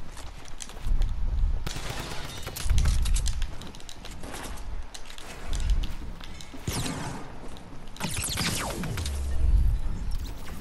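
Wooden building pieces thud heavily into place.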